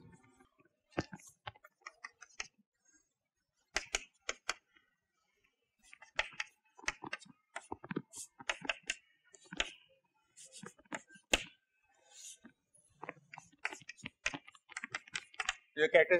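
A chalk taps and scrapes on a blackboard.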